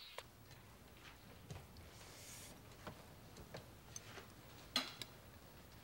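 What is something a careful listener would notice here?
Food rustles and squelches as a hand mixes it in a metal pot.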